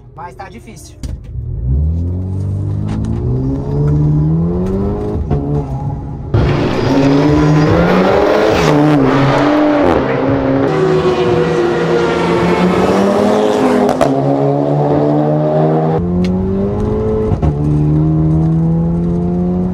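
A car engine revs hard and roars as the car speeds up through the gears.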